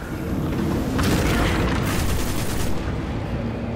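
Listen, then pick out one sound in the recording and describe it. An electric blast crackles and roars.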